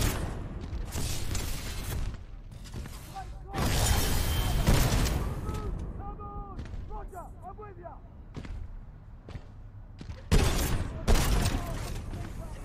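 A heavy gun fires loud bursts.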